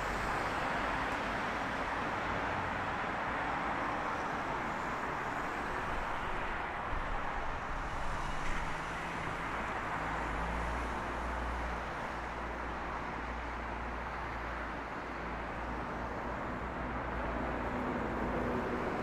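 Traffic rumbles and hisses steadily along a nearby street, outdoors.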